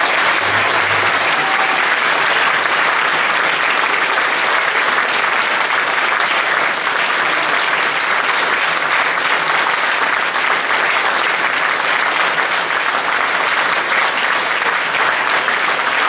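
An audience claps and applauds steadily in a hall.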